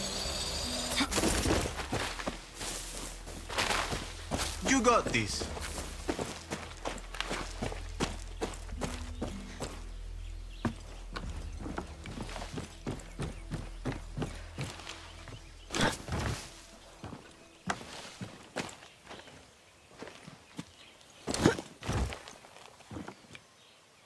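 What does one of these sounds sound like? Footsteps crunch on dirt, rock and undergrowth at a steady walking pace.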